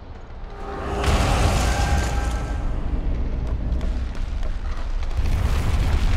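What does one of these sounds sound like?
A heavy door rumbles open with a burst of magical energy.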